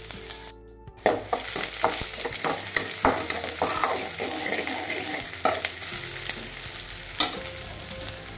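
A metal skimmer scrapes and clinks against a pan.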